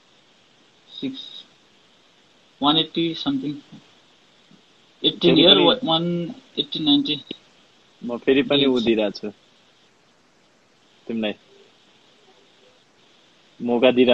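A second young man answers over an online call.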